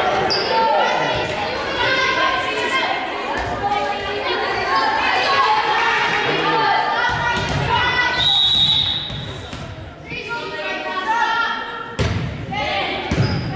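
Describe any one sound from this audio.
Young women shout and call out to each other across a large echoing gym.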